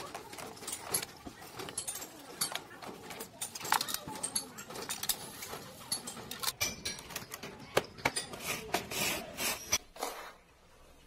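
Cardboard tubes knock and rustle as hands pack them.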